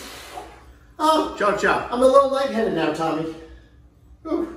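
A woman exclaims loudly and laughs close by.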